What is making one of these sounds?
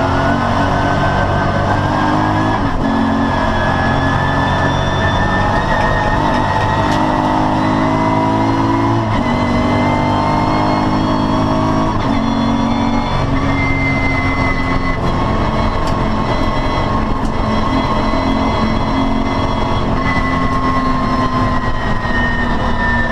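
Tyres hum on the track surface.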